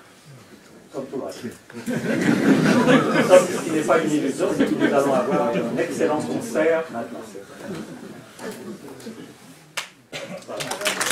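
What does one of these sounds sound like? An elderly man lectures with animation in an echoing hall.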